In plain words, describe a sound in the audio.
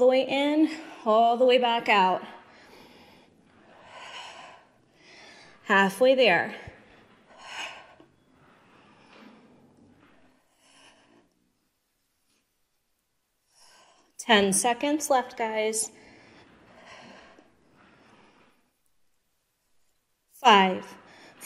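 A young woman speaks calmly and clearly nearby, with pauses between her words.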